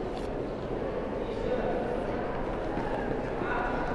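A runner's feet thud on the track.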